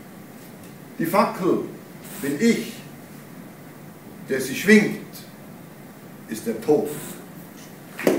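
An elderly man reads aloud slowly in an echoing hall.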